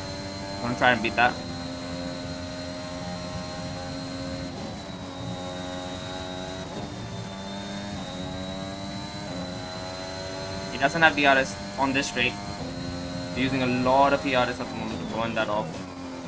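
A racing car engine roars and whines, rising in pitch through each gear and dropping as the gears change.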